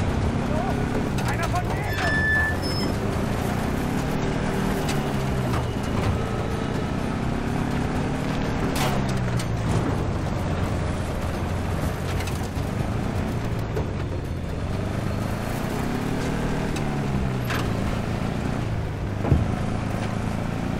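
Tyres rattle over a rough dirt road.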